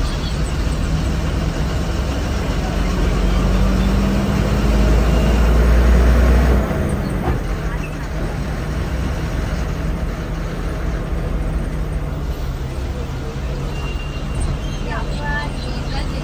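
Traffic passes by on the road.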